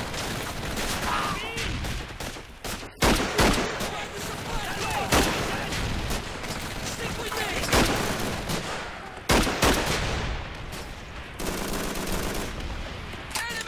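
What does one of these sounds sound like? Rifle shots crack out one after another.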